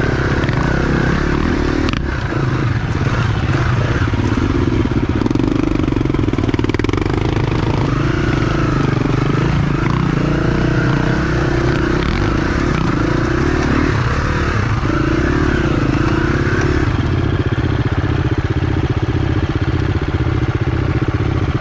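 A second dirt bike engine whines and revs a little way ahead.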